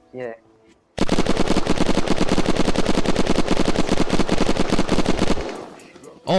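A game gun fires in a rapid, rattling burst.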